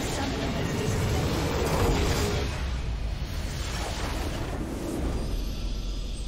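A large game explosion booms and rumbles.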